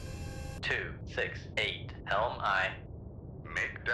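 A submarine's engine rumbles low and steady underwater.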